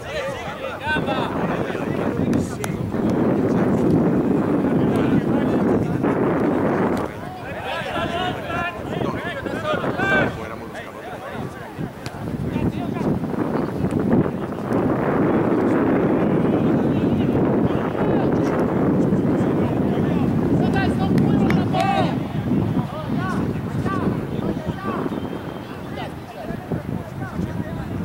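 Young men shout and call to one another across an outdoor field.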